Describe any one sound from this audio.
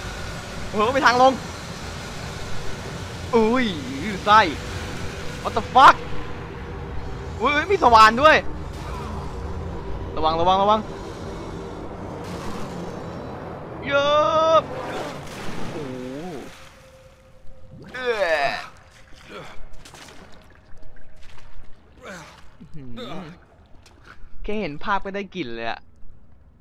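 A young man talks and laughs with animation into a close microphone.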